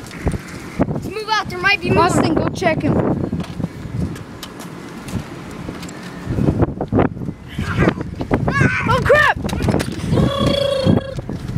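A boy shouts with excitement close by.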